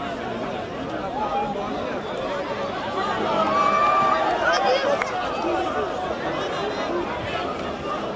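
A large outdoor crowd chatters and shouts throughout.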